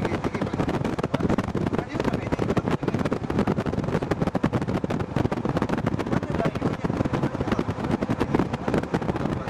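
A vehicle's engine hums as it drives along a road.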